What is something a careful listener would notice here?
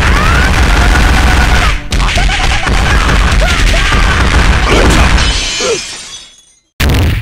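Rapid punches and kicks land with heavy impact thuds.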